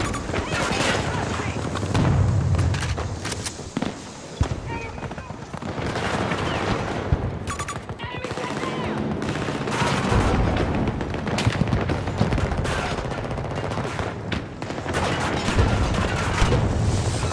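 Gunshots crack and echo nearby, in quick bursts.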